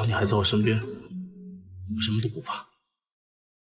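A man speaks softly and tenderly up close.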